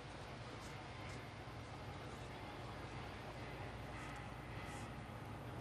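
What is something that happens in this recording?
A crowd of people murmurs and chatters at a distance in a large open space.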